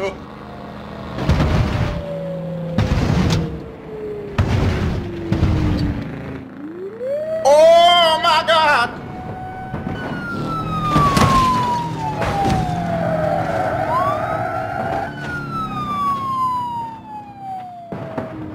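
Cars crash into metal railings and each other with loud bangs.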